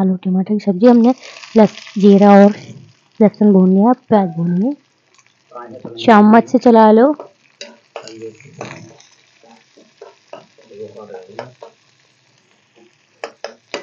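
Onions sizzle in hot oil in a pan.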